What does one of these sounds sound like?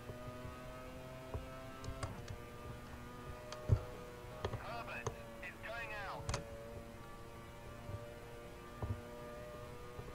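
A racing car engine hums steadily, its pitch shifting with speed.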